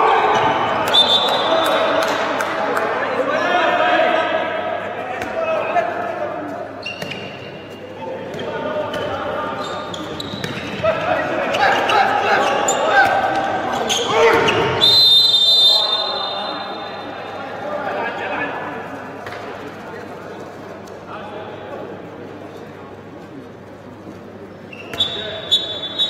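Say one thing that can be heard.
A referee's whistle blows sharply in an echoing hall.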